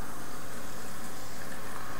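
Beer pours into a glass.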